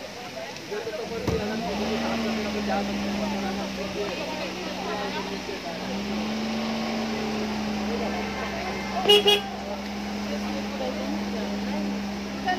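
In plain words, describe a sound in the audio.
A crowd of men and women talk at once outdoors.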